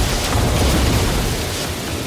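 Laser beams fire with a buzzing zap.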